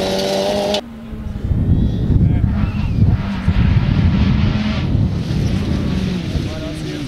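Gravel and stones spray and rattle under a car's tyres.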